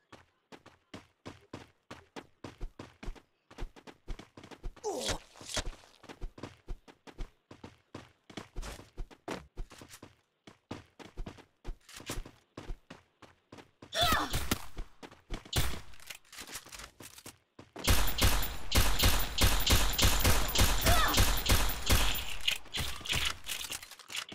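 Quick footsteps tap steadily on hard ground.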